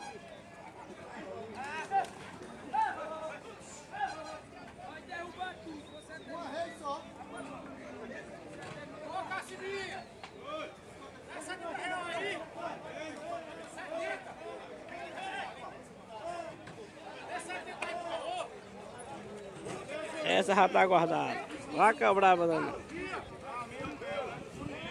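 Several men talk and call out outdoors.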